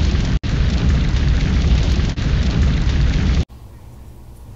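A blowtorch roars with a steady rushing hiss.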